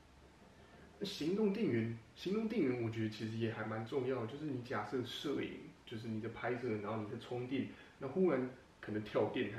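A young man talks calmly into a microphone close up.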